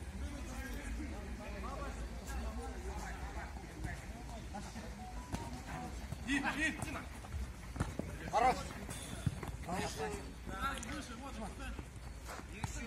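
Men shout to each other outdoors during a football game.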